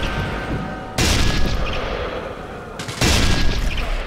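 A rifle fires loud shots that ring out and fade.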